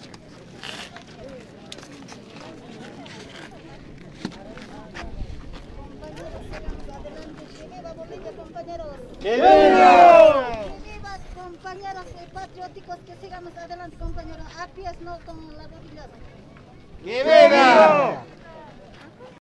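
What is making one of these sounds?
A crowd of men and women talks and murmurs outdoors.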